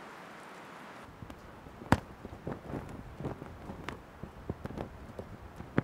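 A large cloth flaps and snaps in the wind outdoors.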